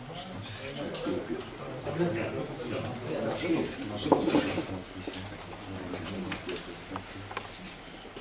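Several people murmur and talk quietly in the background.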